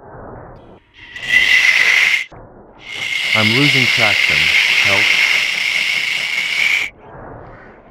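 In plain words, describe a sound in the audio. A steam locomotive's whistle blows loud and long.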